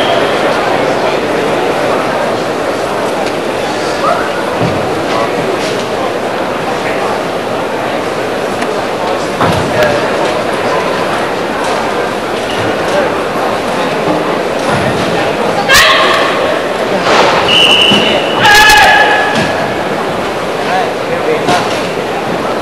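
Bare feet stamp and slide on a wooden floor.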